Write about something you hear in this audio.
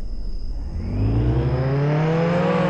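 A car engine starts and revs up.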